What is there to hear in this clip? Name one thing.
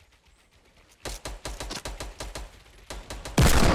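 Wooden walls snap into place with quick rapid clacks.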